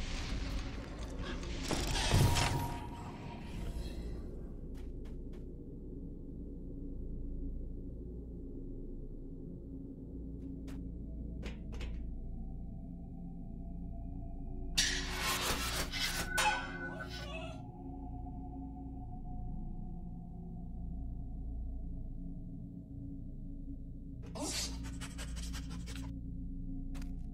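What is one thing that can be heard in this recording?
Footsteps scuff on a stone floor.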